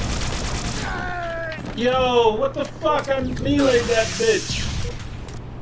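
A man speaks excitedly into a close microphone.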